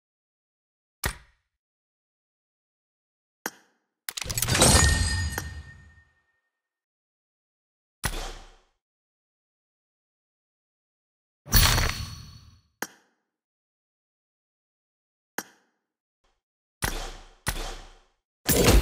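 Short electronic menu clicks sound now and then.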